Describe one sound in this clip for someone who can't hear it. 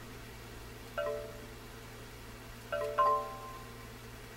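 Short electronic game beeps sound as letters are picked.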